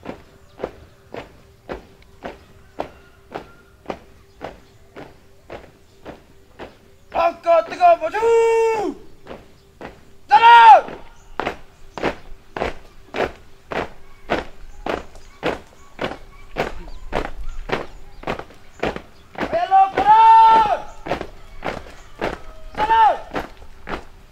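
Marching feet stamp in a steady, even rhythm.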